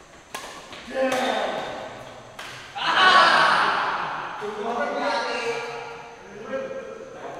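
Men shout and call out across the court.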